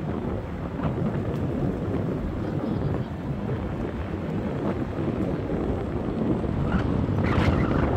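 A car engine hums as a car drives slowly past.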